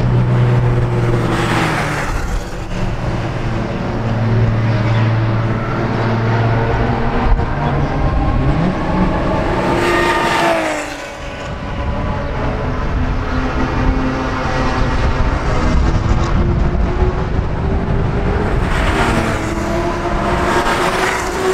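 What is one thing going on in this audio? A sports car engine roars loudly as it speeds past and fades away.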